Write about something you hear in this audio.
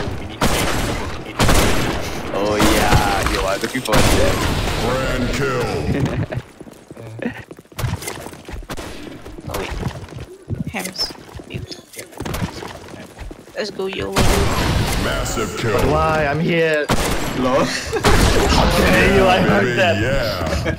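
A sniper rifle fires single shots.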